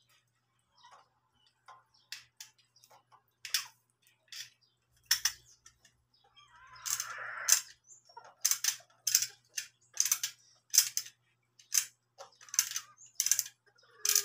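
Small tackle pieces click and tap as they are handled close by.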